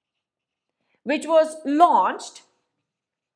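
A woman speaks clearly and calmly, close to a microphone.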